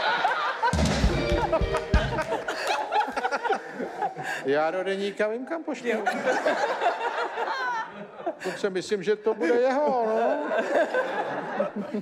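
A woman laughs close to a microphone.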